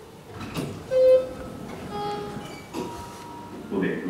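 An elevator chime rings with a few short tones.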